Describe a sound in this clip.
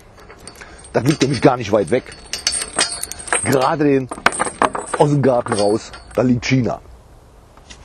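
An older man talks calmly nearby, outdoors.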